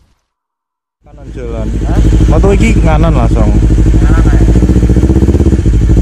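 A motorcycle engine rumbles with a deep, steady throb.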